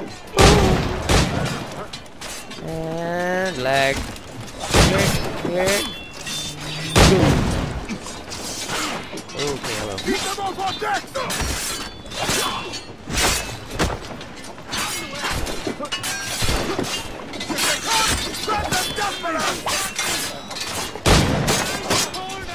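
Cannons boom and explosions crack in quick bursts.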